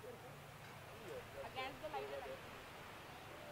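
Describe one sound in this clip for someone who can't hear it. A young woman laughs and squeals on a swing.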